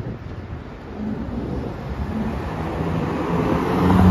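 A car drives along the street toward the listener.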